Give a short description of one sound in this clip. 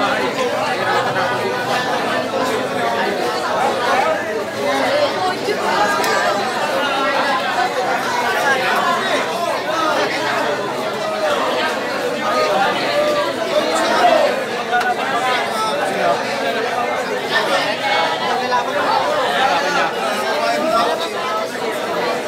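A large crowd of men and women chatters and calls out loudly nearby.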